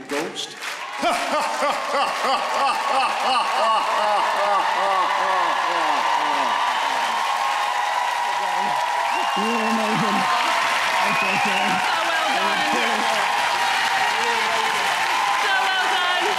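A large crowd cheers and applauds loudly in an echoing hall.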